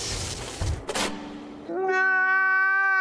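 A man wails and sobs close by.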